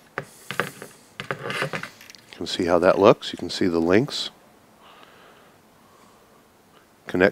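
Small plastic parts click and rattle as they are handled.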